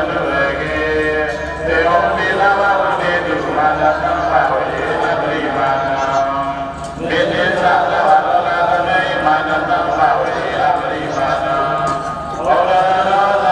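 A crowd of women chants a prayer together in unison.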